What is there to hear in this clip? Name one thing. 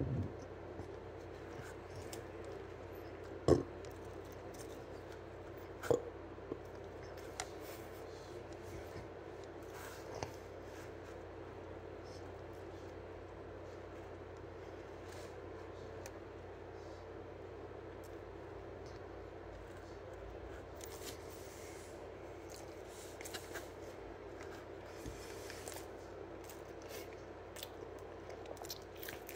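A teenage boy chews crunchy food close by.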